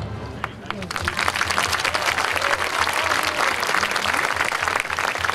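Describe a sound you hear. A marching band's brass horns play.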